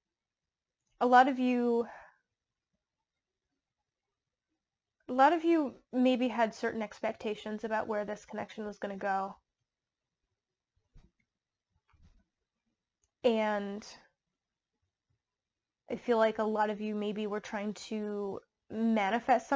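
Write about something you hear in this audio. A woman speaks calmly, close up, with pauses.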